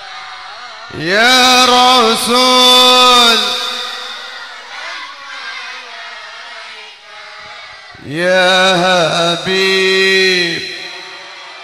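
A crowd of women sings a chant together over a loudspeaker.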